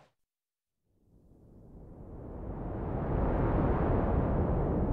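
Rocks burst apart with a deep rumbling roar that swells.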